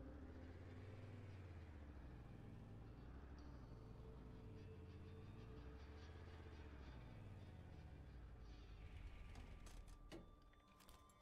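A vehicle engine hums and revs up and down.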